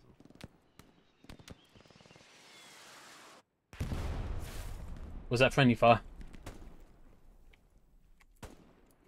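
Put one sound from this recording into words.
Distant gunshots crack now and then.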